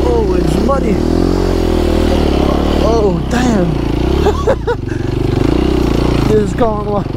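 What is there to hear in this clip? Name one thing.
A dirt bike engine runs and revs steadily.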